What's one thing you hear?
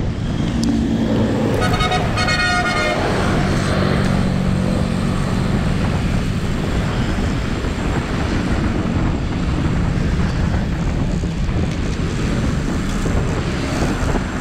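Motorbike engines and traffic drone nearby.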